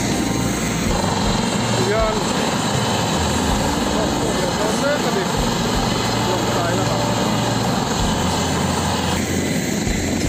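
A helicopter engine whines as its rotor turns slowly.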